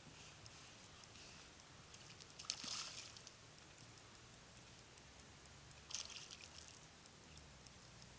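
Water splashes and laps against a boat's hull.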